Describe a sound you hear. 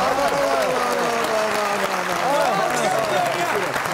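A studio audience claps.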